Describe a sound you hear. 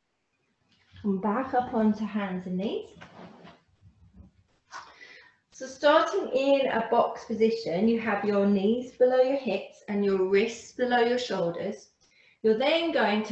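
A woman speaks calmly, giving instructions close by.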